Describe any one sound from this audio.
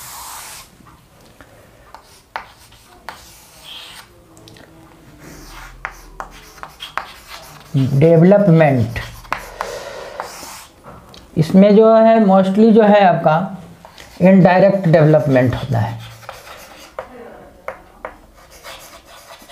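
Chalk taps and clicks against a chalkboard while writing.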